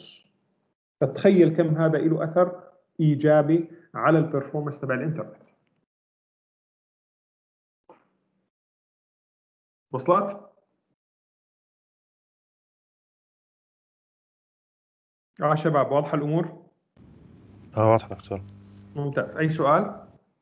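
A man speaks calmly, lecturing through an online call, with pauses.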